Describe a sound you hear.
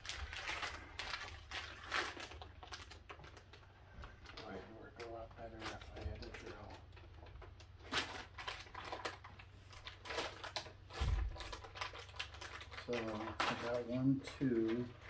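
Paper rustles and crinkles in a man's hands.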